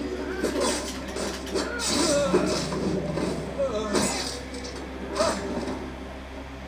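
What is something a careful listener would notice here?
Swords clash and strike in a fight.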